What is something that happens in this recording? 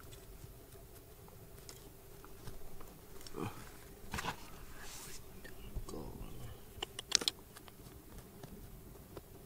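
Fingers brush and crumble loose soil.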